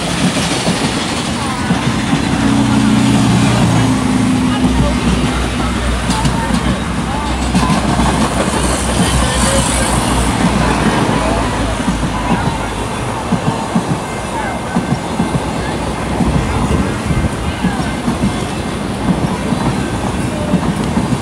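A train of passenger cars rolls past close by, its wheels rumbling and clacking on steel rails.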